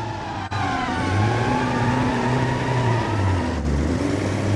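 Car tyres screech on the road.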